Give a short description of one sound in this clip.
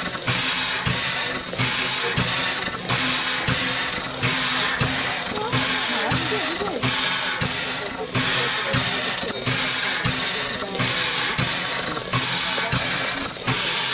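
A steam locomotive's air pump puffs and hisses in a steady rhythm, close by.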